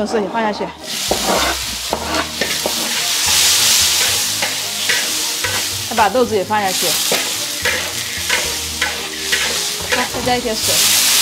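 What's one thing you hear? Food sizzles loudly in hot oil.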